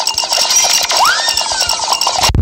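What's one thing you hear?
A cartoonish sound effect swoops upward.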